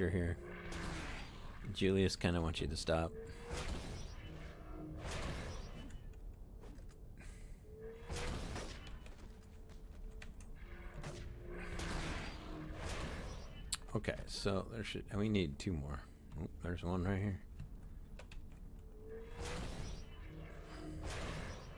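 Magic spells whoosh and crackle in bursts.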